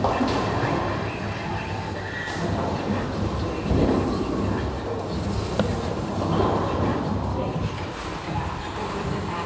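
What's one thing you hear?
Bowling pins crash and clatter in an echoing hall.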